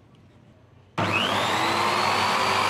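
An electric sanding disc motor whirs loudly and spins up.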